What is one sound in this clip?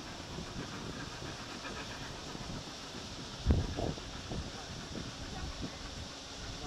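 Water laps gently against a stone quay outdoors.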